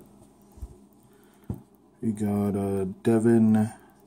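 Fingers handle a stiff trading card with a faint rustle.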